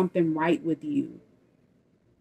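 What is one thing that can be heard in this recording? A woman speaks close to the microphone.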